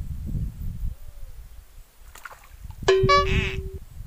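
A lure splashes into the water.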